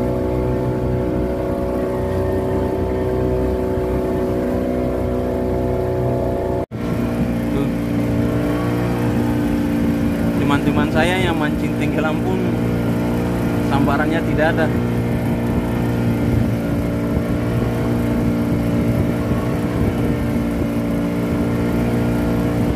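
An outboard motor drones steadily close by.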